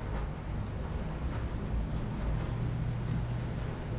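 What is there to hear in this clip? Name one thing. A marker squeaks softly on paper.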